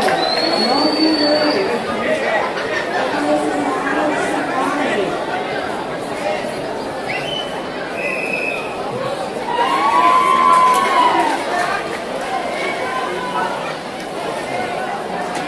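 A large crowd chatters and shouts in a big echoing hall.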